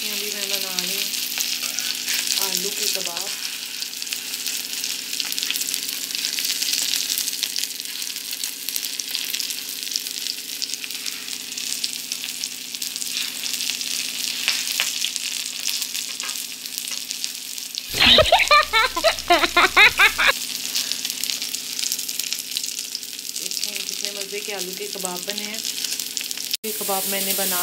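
Patties sizzle in hot oil.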